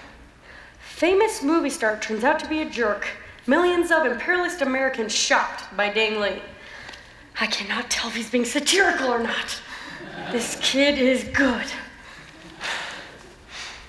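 A young woman speaks with animation in a large hall.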